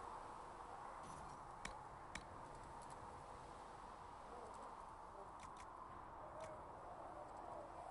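Menu clicks tick one after another.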